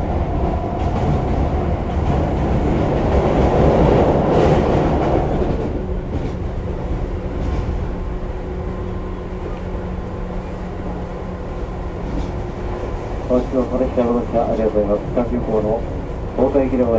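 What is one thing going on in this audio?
A train rumbles along the tracks.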